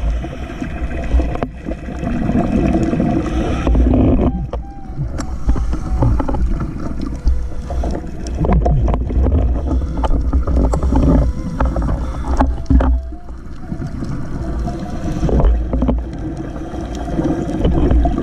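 Air bubbles gurgle and rumble underwater in bursts.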